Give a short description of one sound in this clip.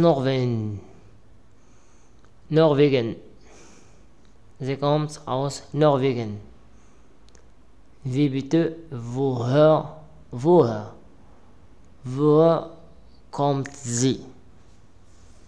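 A man speaks calmly and slowly into a close microphone.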